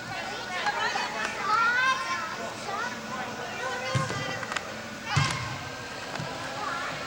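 Players shout to each other in a large echoing indoor hall.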